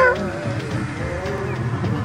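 A pickup truck drives past.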